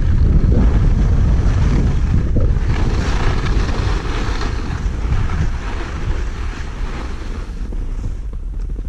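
Skis scrape and hiss over packed snow, slowing down.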